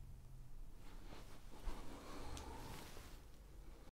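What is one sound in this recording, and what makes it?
Clothing rustles as a man reaches toward the microphone.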